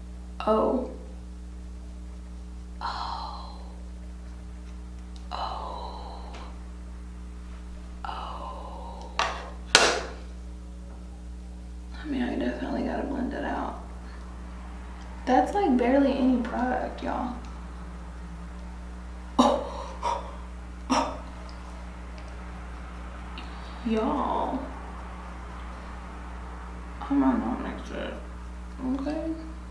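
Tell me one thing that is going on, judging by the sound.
A young woman speaks close up, in short lively bursts.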